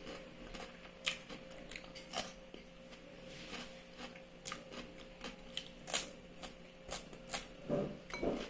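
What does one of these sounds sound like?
A woman peels an eggshell with small crackling clicks.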